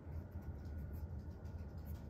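A hand brushes across a paper page.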